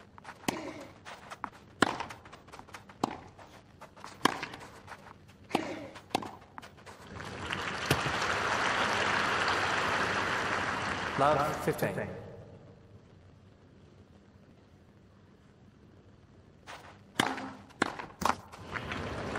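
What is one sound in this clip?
Tennis balls are struck sharply with rackets and bounce on grass.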